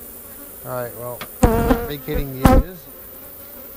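A man speaks briefly and casually close by.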